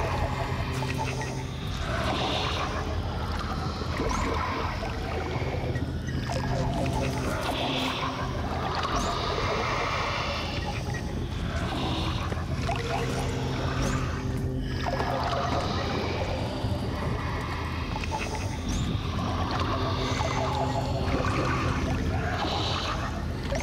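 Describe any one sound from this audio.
Game music plays steadily.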